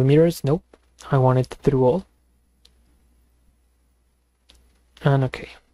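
A young man speaks calmly into a close microphone, in short bursts with pauses.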